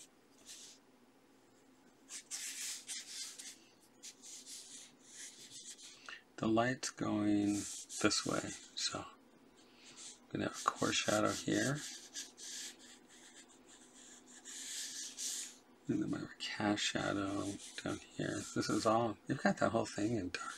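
A pencil scratches and rasps across paper.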